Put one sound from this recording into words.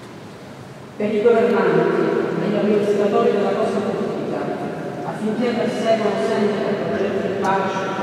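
A woman speaks into a microphone, her voice echoing through a large hall over loudspeakers.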